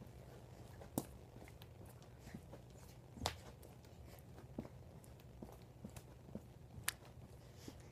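Bare feet thump softly on a carpeted floor.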